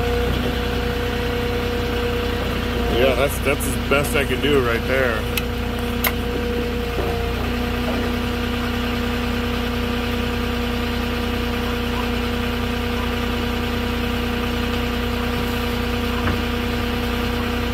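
A forklift engine idles with a steady hum.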